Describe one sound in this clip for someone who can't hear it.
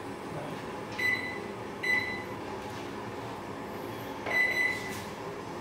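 A microwave beeps as its buttons are pressed.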